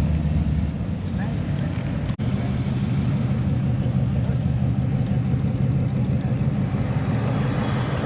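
A hot rod engine rumbles loudly.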